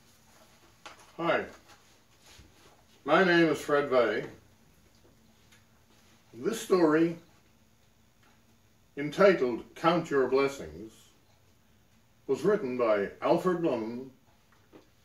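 An elderly man speaks calmly and close by, with pauses between phrases.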